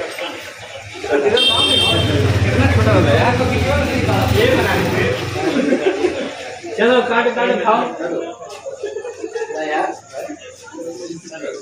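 A group of young men talk and cheer loudly nearby.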